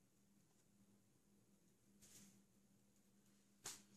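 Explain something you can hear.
A paper towel rustles as it is laid down on a table.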